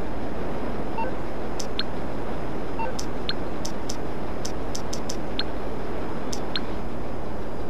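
A phone menu clicks and beeps several times.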